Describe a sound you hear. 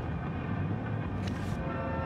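A notebook is set down softly on a bed.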